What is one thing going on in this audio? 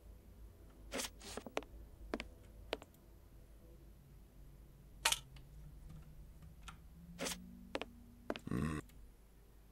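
Footsteps tap on wooden planks.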